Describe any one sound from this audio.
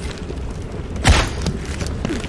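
A bow releases an arrow with a sharp snap.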